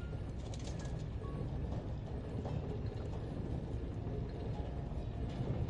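Molten metal pours with a deep, steady rumble.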